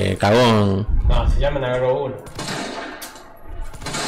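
Gunshots bang in quick succession.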